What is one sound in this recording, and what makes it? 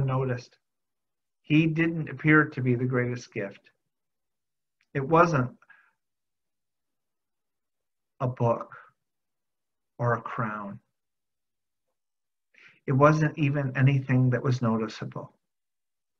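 A middle-aged man speaks calmly in short phrases with pauses, heard through an online call.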